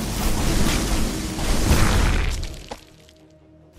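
Laser weapons fire in rapid, crackling bursts.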